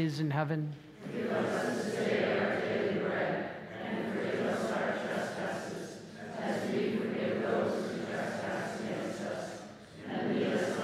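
A crowd of people recites prayers together in unison.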